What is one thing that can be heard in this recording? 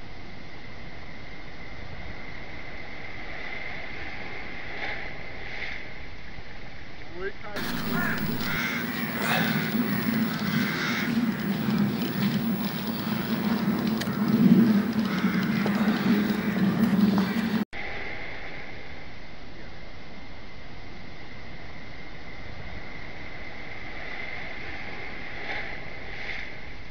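Waves crash and wash ashore steadily.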